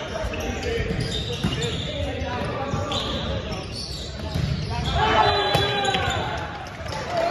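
Young men call out and shout to each other in a large echoing gym.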